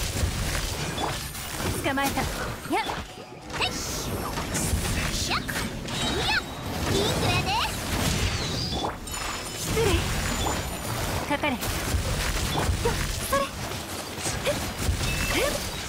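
Blades swish and clang in rapid strikes.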